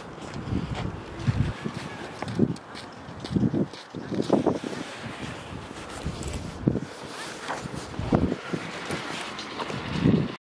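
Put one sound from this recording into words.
Footsteps crunch on packed snow at a steady walking pace.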